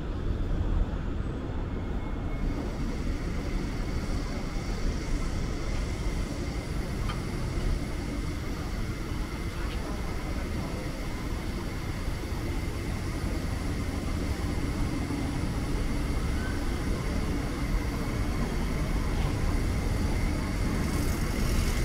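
Outdoors, wind blows steadily.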